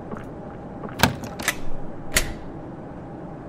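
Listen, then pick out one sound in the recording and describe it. Short electronic game sound effects chime and click.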